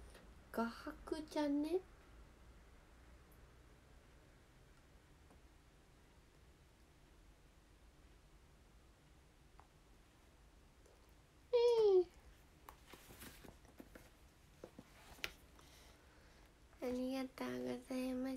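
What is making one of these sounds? A young woman speaks brightly and playfully, close by.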